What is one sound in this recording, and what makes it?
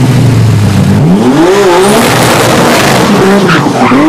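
A car engine revs hard and climbs in pitch.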